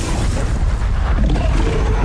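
Water churns and splashes loudly.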